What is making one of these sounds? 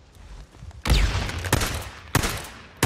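A barrel explodes with a deep boom.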